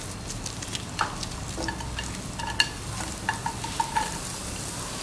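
Onion pieces drop and patter into a sizzling pan.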